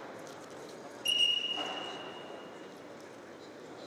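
A referee blows a whistle.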